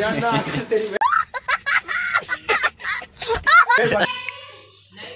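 A young boy shouts and laughs excitedly.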